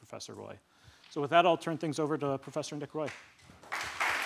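A man speaks into a microphone in a large echoing room.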